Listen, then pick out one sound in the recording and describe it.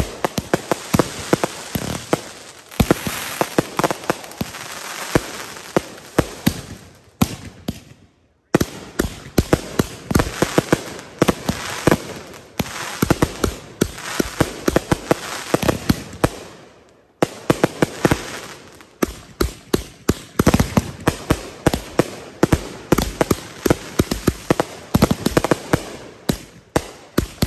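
Firecrackers crackle and bang in rapid bursts.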